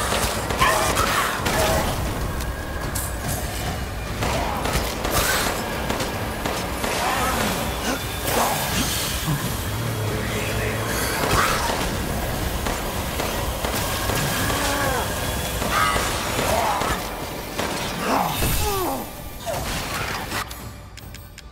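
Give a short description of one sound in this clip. Gunshots fire in sharp bursts.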